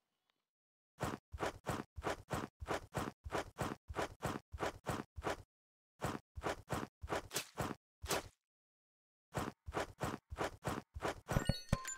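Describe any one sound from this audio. Footsteps crunch steadily over grass and dirt.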